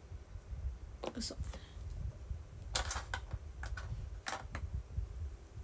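Small items rustle and click close by.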